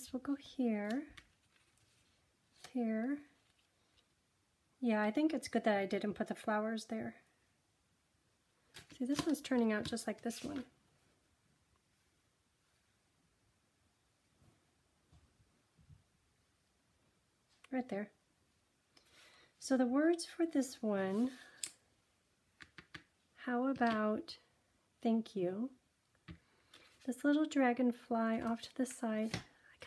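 Paper rustles softly as it is handled.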